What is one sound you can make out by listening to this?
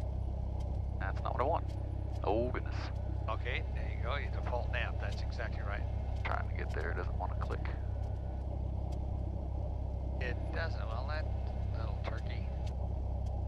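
A man speaks calmly through an aviation headset intercom.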